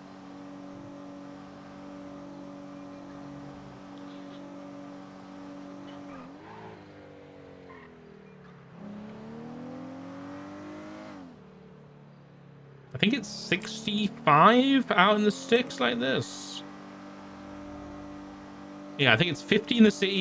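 A car engine hums steadily and rises and falls in pitch as the car speeds up and slows down.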